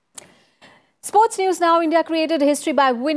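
A young woman speaks calmly and clearly into a microphone, reading out.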